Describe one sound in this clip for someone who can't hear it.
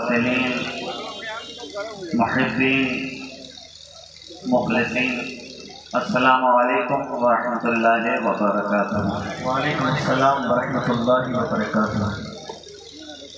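A man sings or recites loudly through a loudspeaker system outdoors, with echo.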